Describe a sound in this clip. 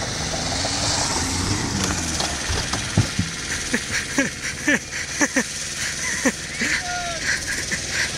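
Tyres crunch and skid on loose gravel.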